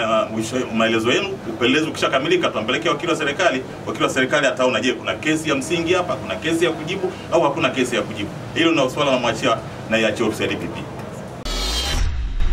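A middle-aged man speaks calmly and firmly into microphones, close by.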